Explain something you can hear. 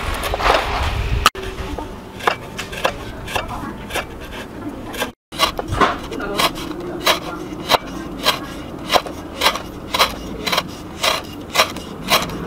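A cleaver chops lemongrass on a wooden cutting board.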